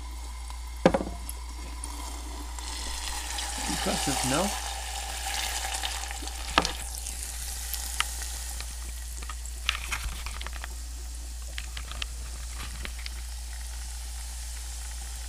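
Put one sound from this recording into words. Fizzy water crackles and hisses softly in a glass.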